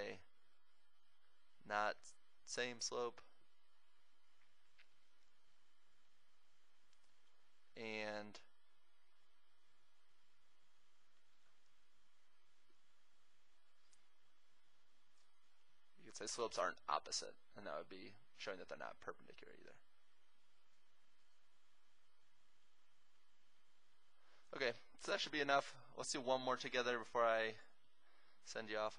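A man speaks calmly, explaining, close to a microphone, with pauses.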